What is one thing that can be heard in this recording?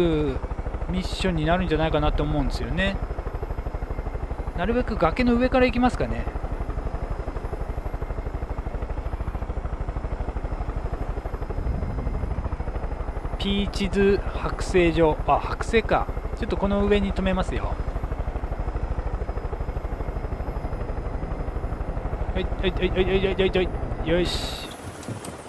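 A helicopter engine drones with a steady, rapid rotor thrum.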